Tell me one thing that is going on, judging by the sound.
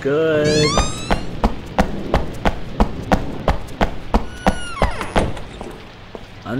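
Footsteps tap quickly along a hard floor.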